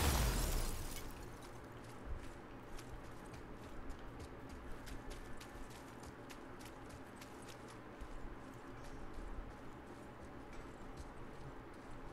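Footsteps run and crunch over rubble and stone.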